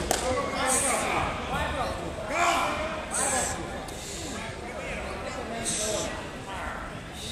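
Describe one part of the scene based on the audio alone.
Several men shout and grunt with effort in an echoing hall.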